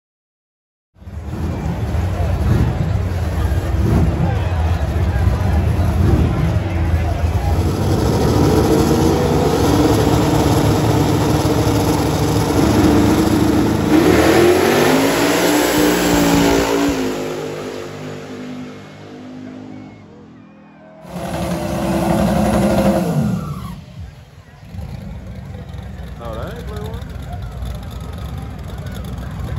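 Powerful race car engines roar and rev loudly, rising in pitch as the cars launch.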